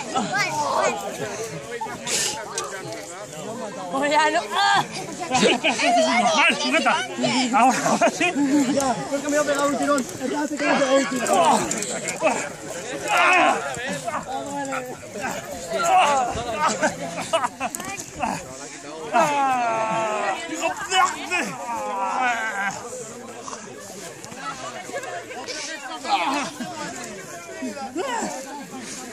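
A crowd of men, women and children talk and call out outdoors.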